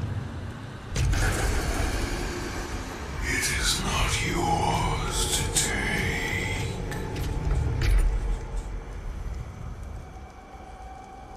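Steam hisses.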